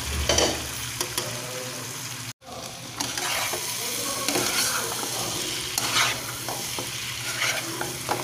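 A spatula scrapes and stirs food in a frying pan.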